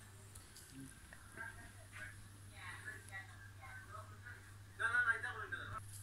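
A television plays sound.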